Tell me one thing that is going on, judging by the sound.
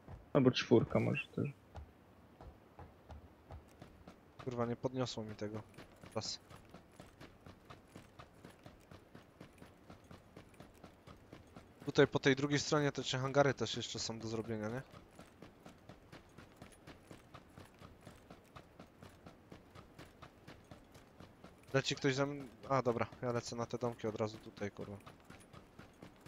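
Footsteps run on hard dirt ground.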